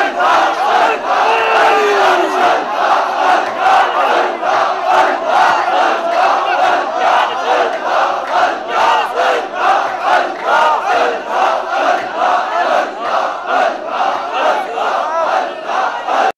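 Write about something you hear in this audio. A crowd of men claps in a steady rhythm.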